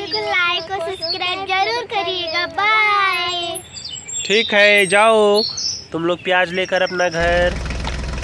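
A young girl speaks with animation close by.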